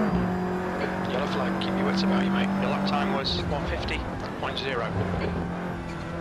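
Tyres squeal and skid on the track.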